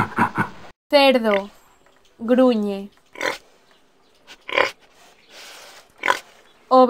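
A pig grunts.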